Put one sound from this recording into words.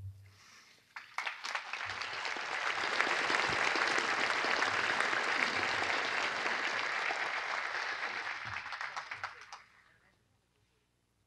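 A large crowd applauds outdoors, then the clapping fades away.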